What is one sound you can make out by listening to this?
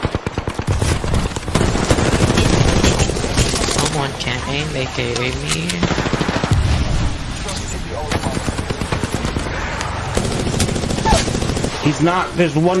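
Gunfire bursts rapidly and loudly.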